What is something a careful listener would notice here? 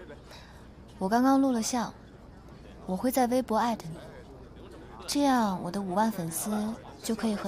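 A second young woman answers calmly up close.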